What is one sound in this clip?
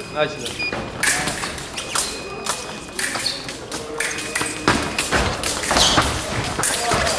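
Fencing blades clash and scrape in quick bursts.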